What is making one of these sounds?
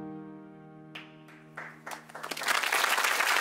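A cello plays slow, sustained notes.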